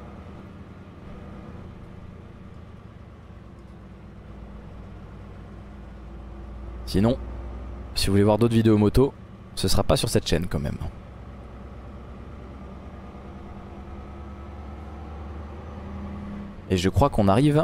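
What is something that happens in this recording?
A truck engine hums steadily.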